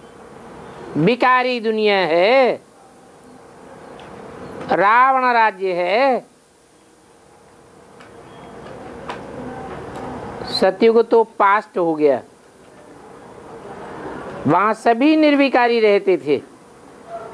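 An elderly man reads out in a raised, sing-song voice, with long pauses between lines.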